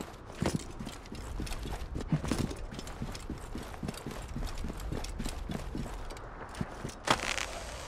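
Footsteps crunch quickly over rock.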